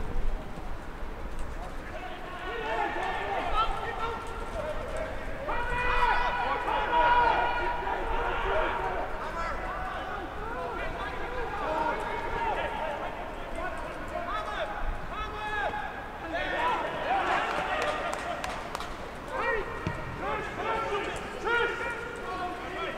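Young men shout to each other outdoors on an open field.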